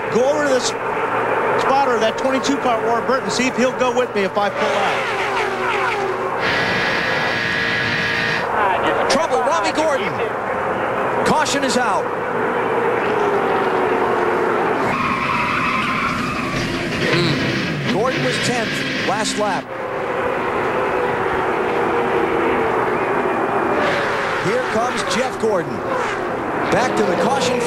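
Race car engines roar past at high speed.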